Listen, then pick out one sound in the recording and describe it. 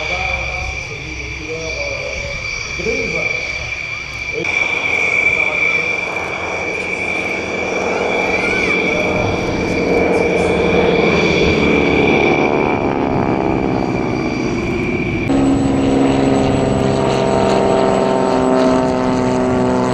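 Propeller aircraft engines drone loudly overhead, rising and falling in pitch as they pass.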